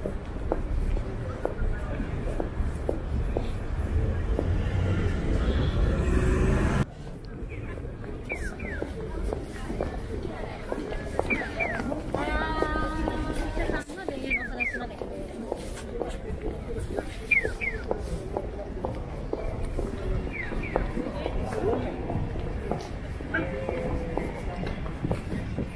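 Footsteps of many people shuffle across pavement.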